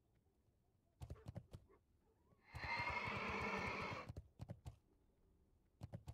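Heavy hooves thud as a mount gallops.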